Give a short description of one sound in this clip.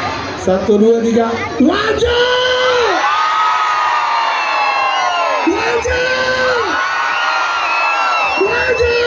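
Music with a singer plays loudly through large loudspeakers.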